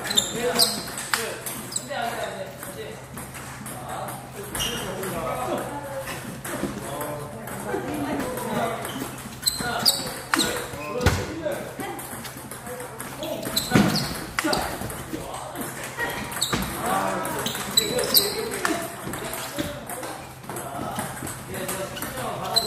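A table tennis ball clicks sharply back and forth off paddles and a table in a steady rally.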